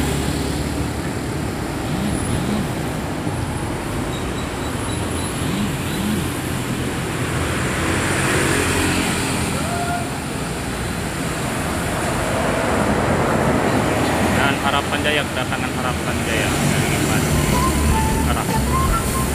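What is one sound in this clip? Motorbikes buzz past.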